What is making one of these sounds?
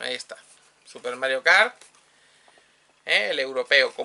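A cardboard box rustles in a man's hands.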